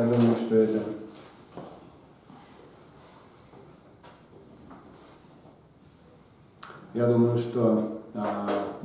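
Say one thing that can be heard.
A middle-aged man speaks calmly into a clip-on microphone, pausing between phrases.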